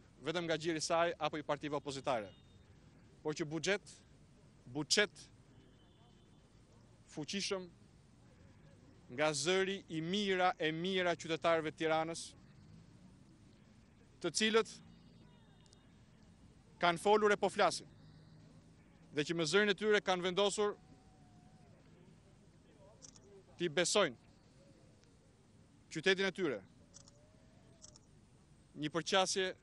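A young man speaks calmly into microphones outdoors, in short phrases with pauses.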